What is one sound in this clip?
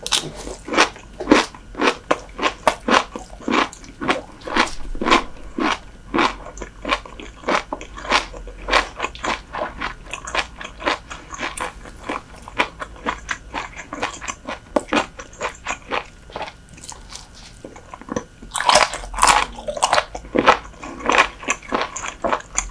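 A young woman chews crunchy food loudly and wetly close to a microphone.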